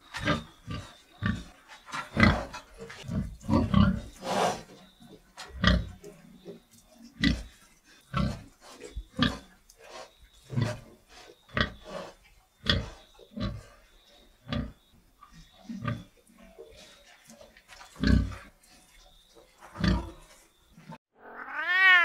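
Pigs grunt and snort close by.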